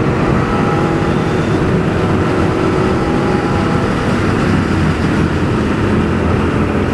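A motorcycle engine hums steadily up close as it rides along.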